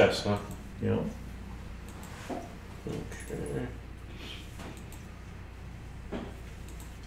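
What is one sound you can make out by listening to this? A man talks casually at a table, heard through a microphone.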